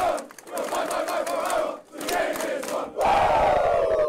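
Young men clap and cheer.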